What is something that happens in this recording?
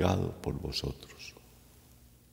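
An elderly man speaks solemnly into a close microphone.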